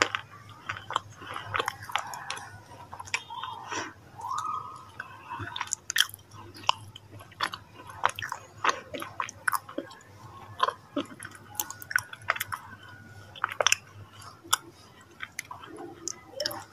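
A young woman makes wet mouth clicks and lip smacks very close to a microphone.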